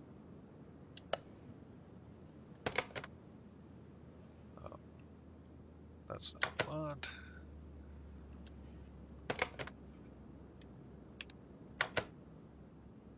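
Short menu clicks sound now and then.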